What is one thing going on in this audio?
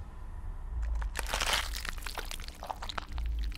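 A monster roars and growls loudly.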